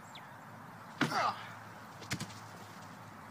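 A body thuds heavily onto the grass.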